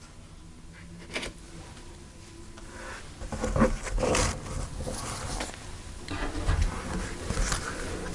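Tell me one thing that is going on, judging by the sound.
Cards slap softly onto a table.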